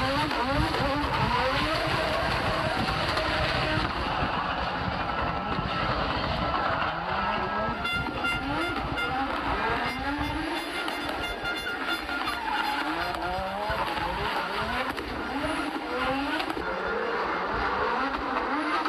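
A rally car engine revs hard, rising and falling sharply.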